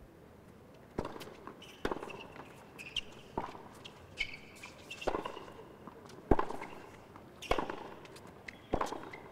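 Tennis balls are struck sharply back and forth in a rally.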